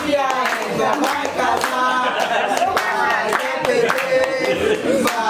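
Several women sing together happily, close by.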